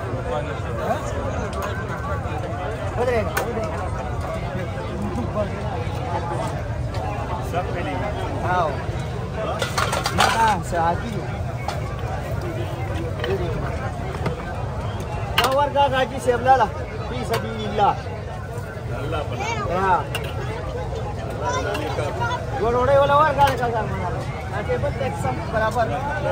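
A crowd of men talks in the background outdoors.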